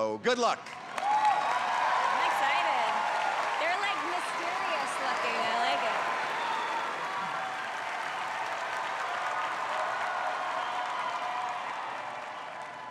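An audience cheers and whoops loudly.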